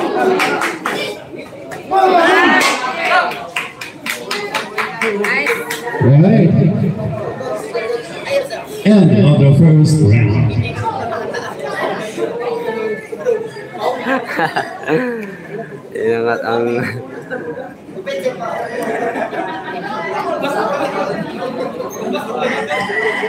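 A crowd of spectators chatters and calls out.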